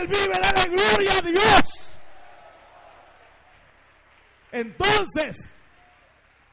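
A man preaches forcefully through a microphone and loudspeakers, his voice echoing in a large hall.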